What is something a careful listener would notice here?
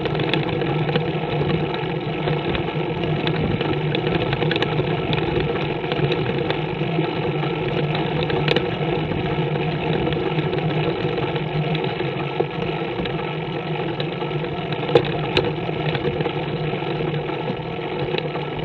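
Tyres roll steadily over a paved road.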